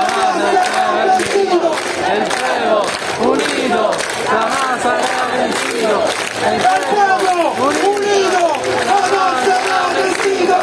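A large crowd chants and sings loudly together outdoors.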